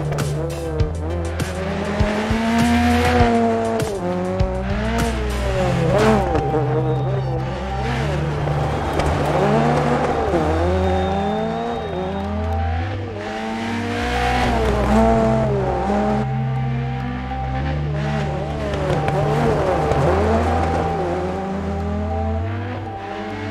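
A rally car engine roars and revs up and down as gears change.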